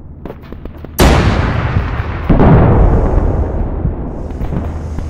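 A huge explosion booms and rumbles away.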